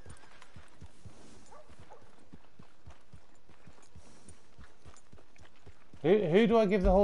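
A horse's hooves clop steadily on soft ground.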